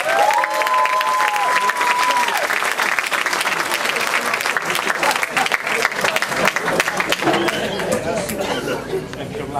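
A crowd applauds and cheers loudly in a large hall.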